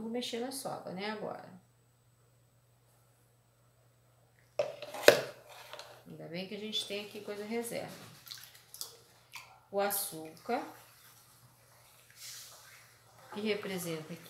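A spoon stirs liquid in a plastic tub.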